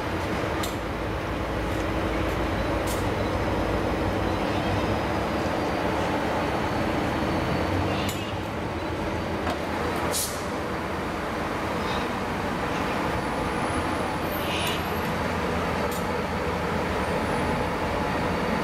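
A diesel locomotive engine rumbles as a train slowly approaches.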